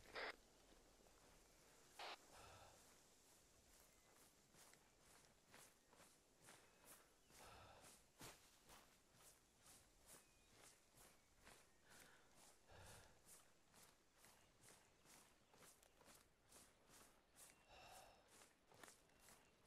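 Footsteps rustle steadily through dry grass.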